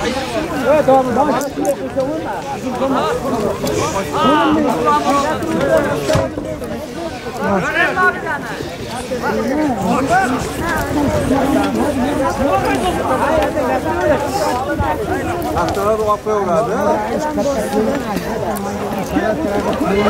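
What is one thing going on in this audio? A crowd of men shouts and calls out loudly outdoors.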